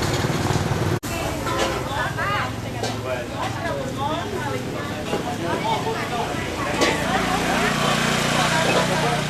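A crowd of men shout and call out close by, outdoors.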